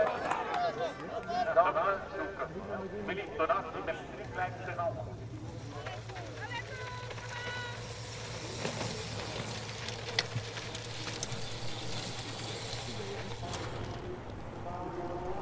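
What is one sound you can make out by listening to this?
Bicycle tyres roll and crunch over a dirt track.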